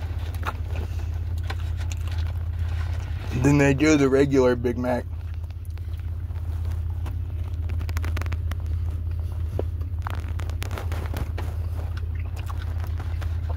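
A man chews food with wet smacking sounds.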